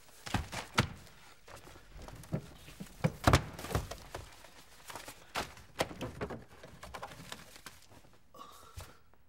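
Papers rustle and thump.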